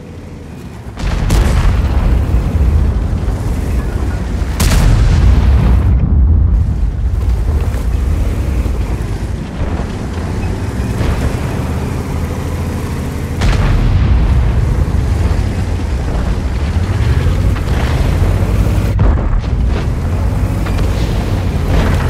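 A heavy tank engine rumbles and its tracks clank.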